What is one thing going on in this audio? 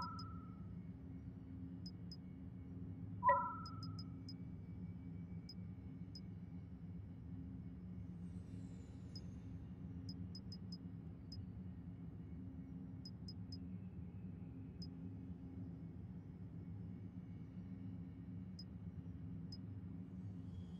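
Soft electronic menu ticks sound as a selection moves from item to item.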